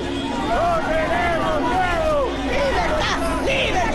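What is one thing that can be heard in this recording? A middle-aged woman shouts angrily.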